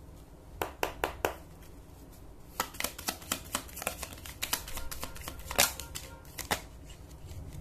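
Playing cards rustle and flick as a deck is shuffled by hand.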